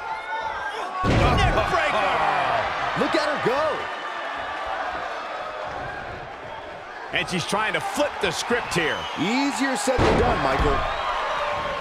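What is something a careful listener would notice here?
A body slams down hard onto a wrestling mat with a heavy thud.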